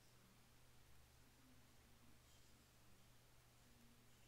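A computer mouse clicks.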